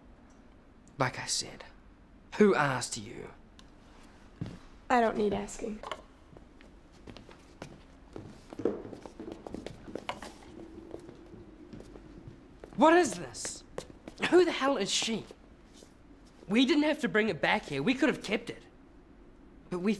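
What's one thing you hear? A young man speaks tensely nearby.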